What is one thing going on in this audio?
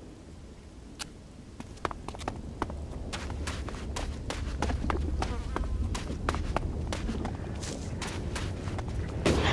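Heavy footsteps clank on rock.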